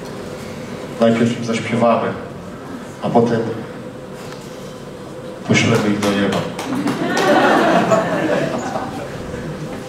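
A man speaks loudly into a microphone over loudspeakers in a large room.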